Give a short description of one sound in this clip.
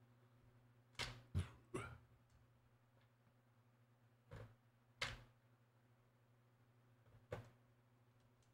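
Short electronic game menu sounds blip as options are chosen.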